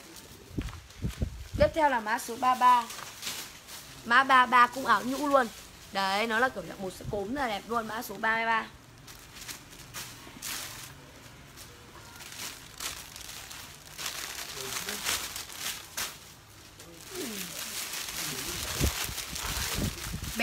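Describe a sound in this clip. Fabric rustles as a garment is shaken and folded.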